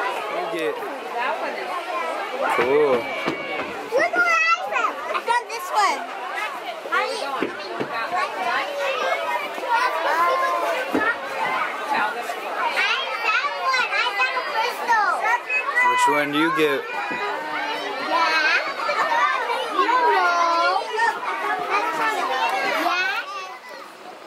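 Young girls talk with animation close by.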